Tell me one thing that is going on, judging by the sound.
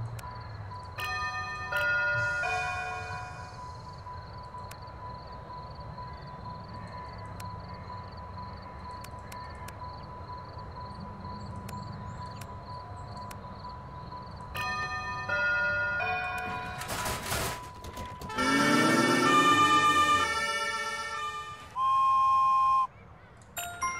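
Short electronic chimes ring out in quick runs.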